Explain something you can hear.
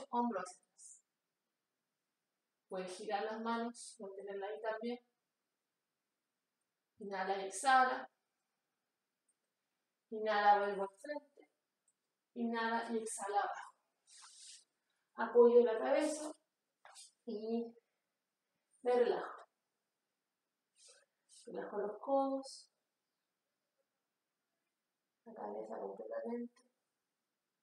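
A woman speaks calmly in short, unhurried phrases with pauses.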